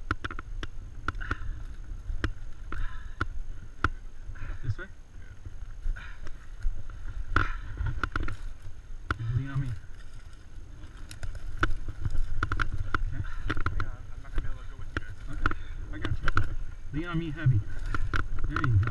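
Tyres crunch and rattle over a rough dirt trail.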